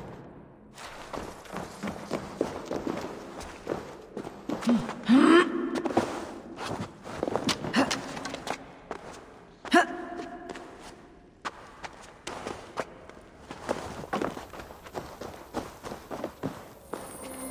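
Footsteps and scrambling sounds of someone climbing over stone and wood.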